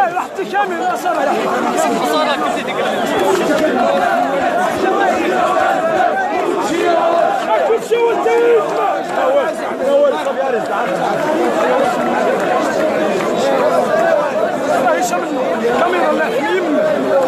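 A crowd of men and women talks and shouts close by, all at once.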